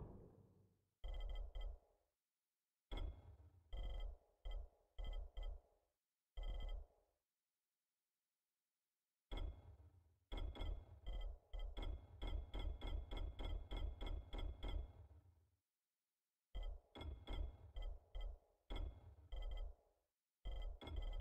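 Short pitched menu clicks tick repeatedly, sometimes in quick runs.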